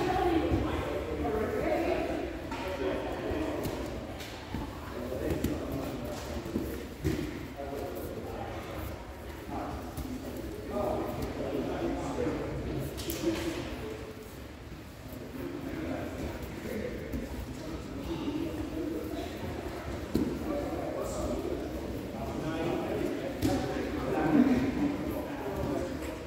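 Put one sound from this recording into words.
Bodies thump and shuffle on floor mats.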